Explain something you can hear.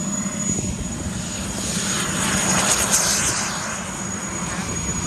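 A model jet engine roars and whooshes past at speed, rising and then fading.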